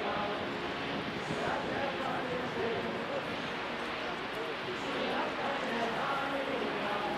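A boat engine rumbles close by.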